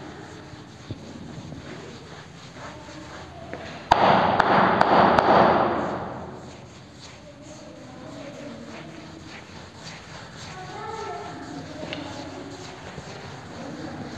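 Chalk scrapes and taps on a board.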